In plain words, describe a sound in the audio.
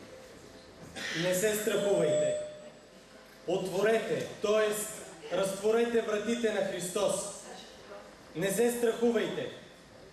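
A young man reads aloud through a microphone in an echoing hall.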